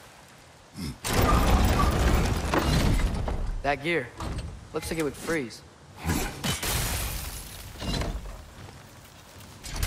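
A heavy wooden crank creaks and rattles as it turns.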